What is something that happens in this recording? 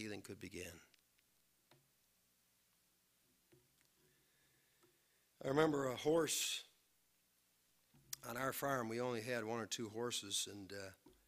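A middle-aged man speaks calmly and earnestly into a microphone, with pauses between phrases.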